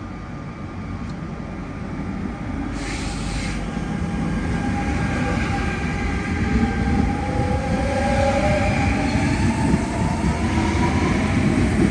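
A train's wheels rumble and clatter on the rails, growing louder.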